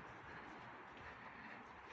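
A fire crackles and pops nearby.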